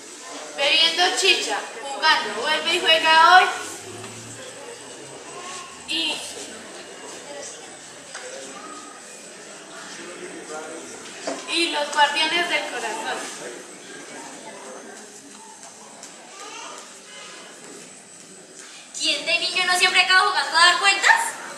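A young woman sings nearby in a high voice.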